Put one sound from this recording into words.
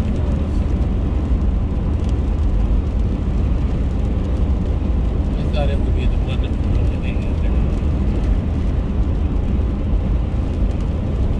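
Raindrops patter lightly on a windshield.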